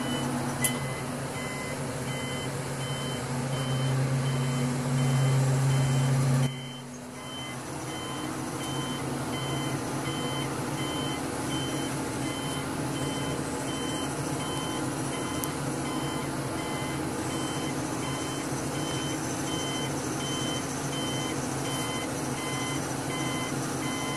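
A heavy crane engine drones steadily close by, louder at first and then settling lower.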